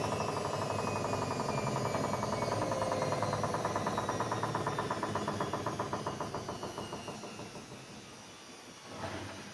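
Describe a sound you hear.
A washing machine drum spins with a rapid rhythmic whirring that slows and quietens.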